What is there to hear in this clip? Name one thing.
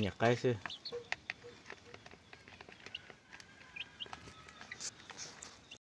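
Young chicks peep and cheep close by.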